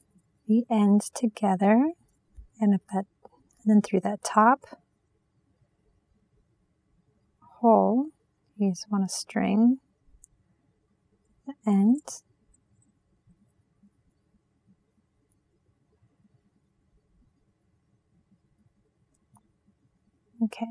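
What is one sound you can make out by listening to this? Small metal links clink softly against each other.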